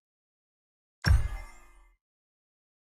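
A game spell whooshes and strikes with a sudden blast.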